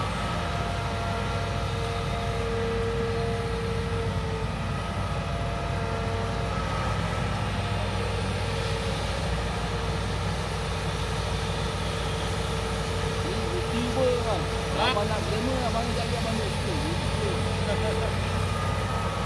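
A diesel excavator engine rumbles and whines steadily nearby.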